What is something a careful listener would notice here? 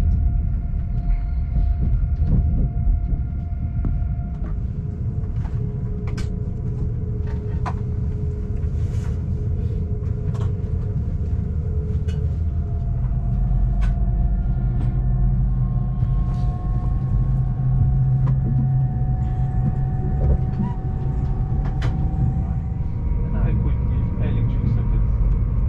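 Train wheels clatter and squeal over the rails.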